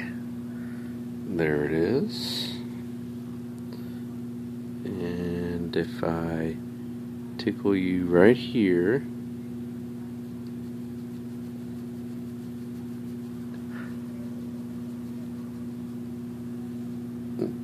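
A hand softly strokes a dog's fur.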